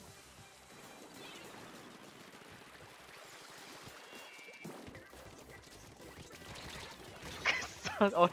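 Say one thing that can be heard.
Game weapons spray and splatter ink softly.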